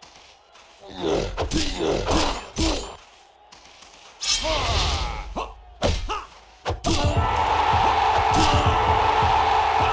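Swords clash and clang in a fight.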